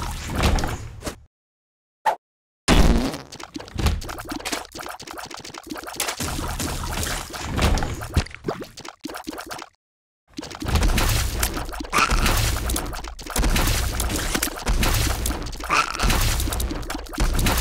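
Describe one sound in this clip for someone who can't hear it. Video game sound effects of shots and splats play rapidly.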